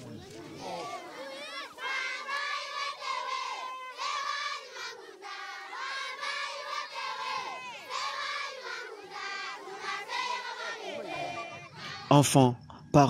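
A crowd of children sings together outdoors.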